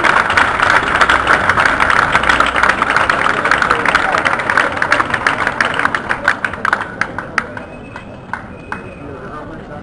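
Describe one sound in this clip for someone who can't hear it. A crowd applauds loudly, the clapping thinning out and fading.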